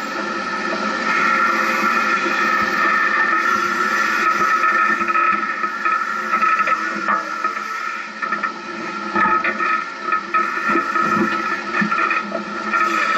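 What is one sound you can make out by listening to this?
An off-road vehicle's engine hums and growls steadily.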